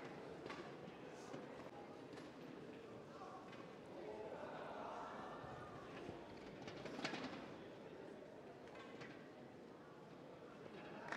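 A crowd murmurs softly in the background.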